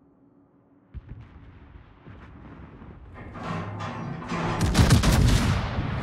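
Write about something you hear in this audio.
Shells explode nearby with a sharp crack and a rumbling roar.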